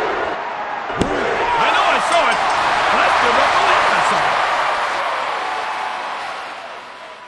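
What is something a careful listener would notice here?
A crowd cheers loudly and then slowly fades.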